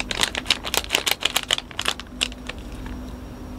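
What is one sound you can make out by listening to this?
A foil snack packet crinkles close to a microphone.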